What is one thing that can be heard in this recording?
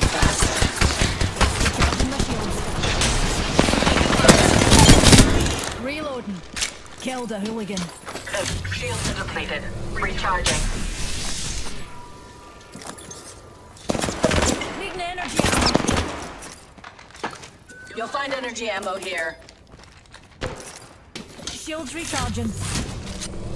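A shield cell charges with a rising electronic whir.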